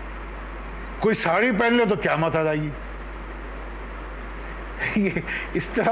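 An older man speaks with animation into a clip-on microphone.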